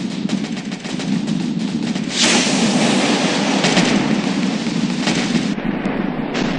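Laser cannons fire in rapid bursts.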